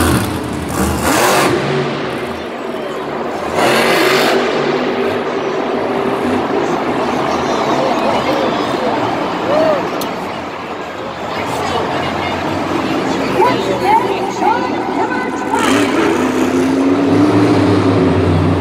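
A monster truck engine roars and revs loudly.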